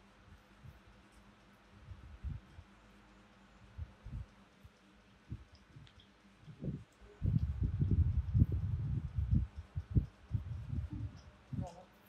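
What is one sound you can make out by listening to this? A small monkey slurps a drink through a straw.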